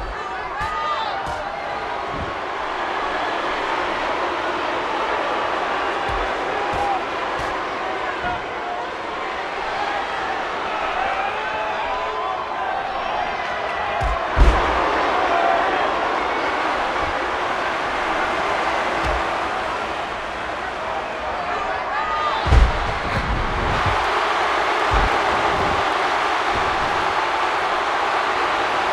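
A large crowd cheers and roars throughout in a big arena.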